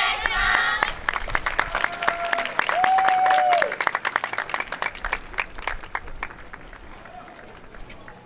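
Wooden clappers clack quickly in rhythm.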